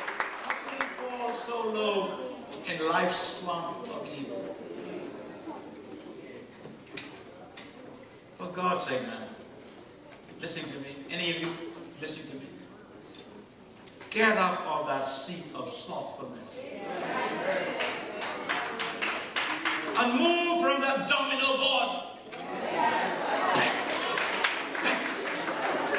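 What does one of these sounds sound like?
An elderly man speaks steadily through a microphone, with pauses.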